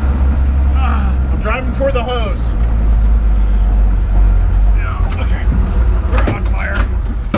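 A van engine rumbles steadily while driving.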